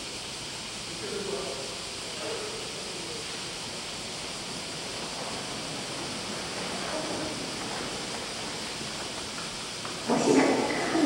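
A man speaks quietly through a microphone in a large echoing hall.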